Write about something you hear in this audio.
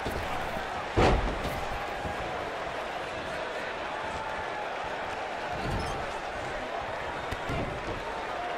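Heavy thuds sound as wrestlers strike each other and hit the ring.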